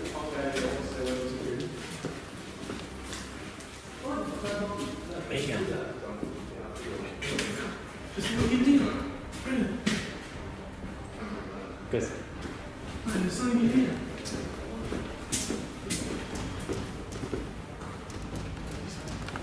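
Footsteps shuffle and scrape on a gritty floor.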